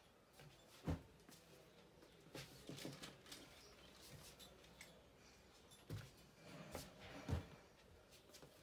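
Clothes rustle and shuffle.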